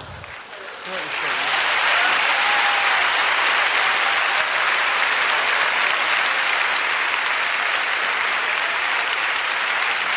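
A large audience applauds in a big echoing hall.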